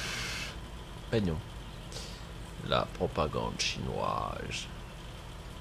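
A man speaks casually into a nearby microphone.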